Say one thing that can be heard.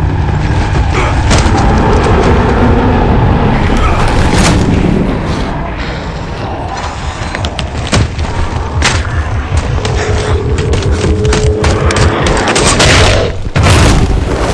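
Energy weapons fire in rapid bursts.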